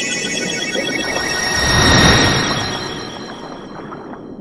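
A magical burst swells with a bright shimmering whoosh.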